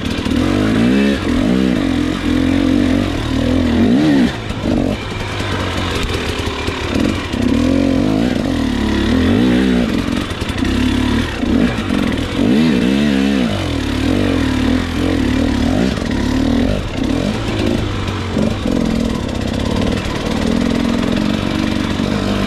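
Tyres crunch over dirt and roots.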